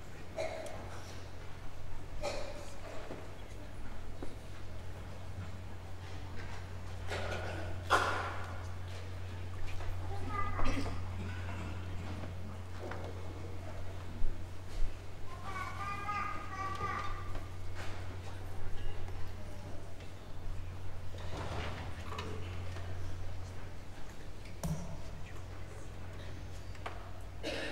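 A seated crowd murmurs and talks quietly in a large echoing hall.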